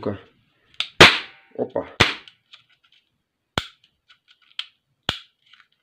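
A plastic toy revolver clicks sharply.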